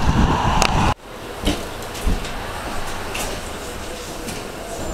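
An electric tram hums quietly from inside.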